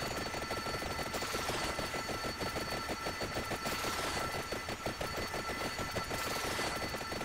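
Rapid game hit sounds patter continuously in quick succession.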